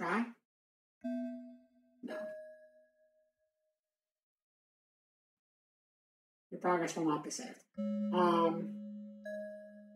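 Game menu tones chime as options are chosen.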